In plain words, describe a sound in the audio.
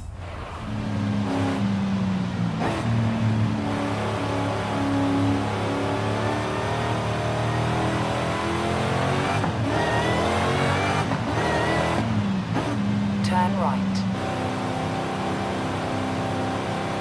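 A car engine hums and revs up and down as the car accelerates and slows.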